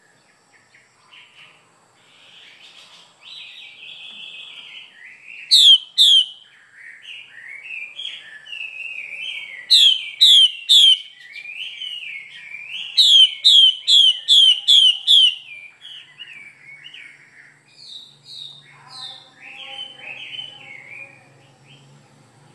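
A caged songbird sings a loud, varied song close by, with sharp repeated whistles.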